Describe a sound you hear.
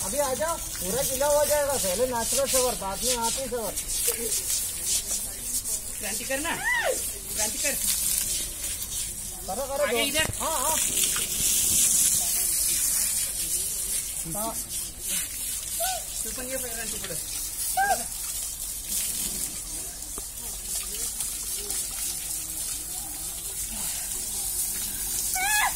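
Water sprays and splashes steadily.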